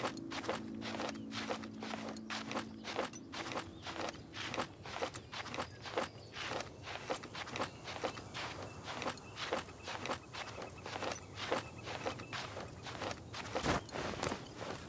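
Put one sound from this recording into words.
A game character's hands and feet scrape and tap steadily against rock while climbing.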